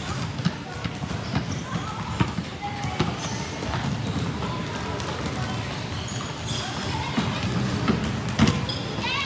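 Basketballs bounce on a hard court, echoing in a large open hall.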